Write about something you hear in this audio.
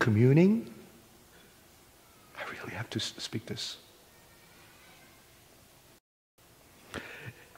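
A middle-aged man speaks with animation through a headset microphone in a large echoing hall.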